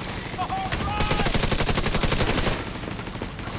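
A gun fires in a rapid burst.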